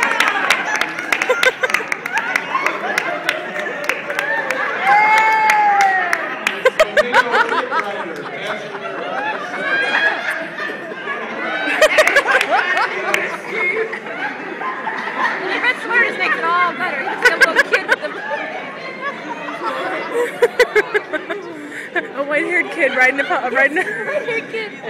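A seated crowd of adults laughs and chatters loudly in a large echoing hall.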